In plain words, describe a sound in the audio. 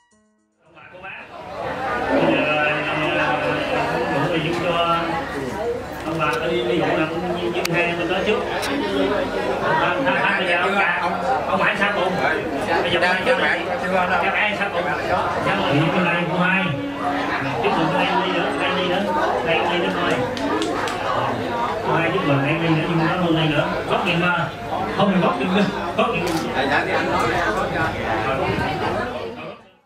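A middle-aged man speaks through a microphone over loudspeakers.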